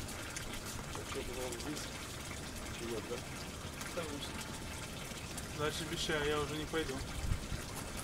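A man talks calmly outdoors.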